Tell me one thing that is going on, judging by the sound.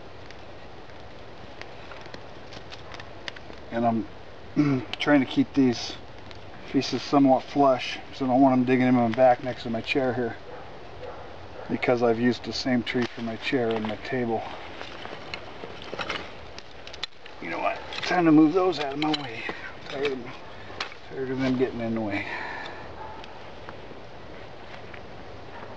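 Sticks clack and rattle as they are handled.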